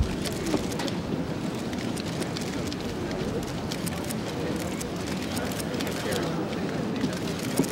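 Footsteps tap on stone steps.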